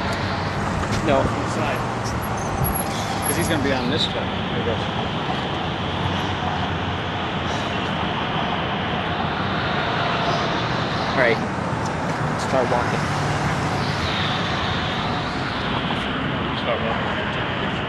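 Train wheels squeal briefly on the rails now and then.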